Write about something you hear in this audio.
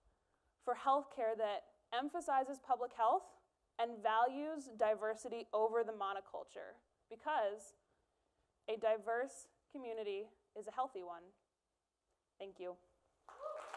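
A young woman speaks calmly and clearly into a microphone in a large hall.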